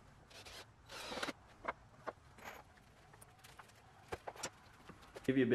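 Wooden boards knock and scrape as a frame is handled.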